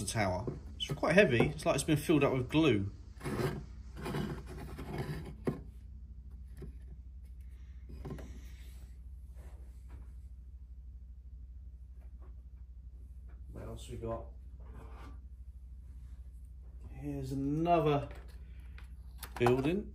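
A hollow plastic model knocks lightly on a wooden tabletop.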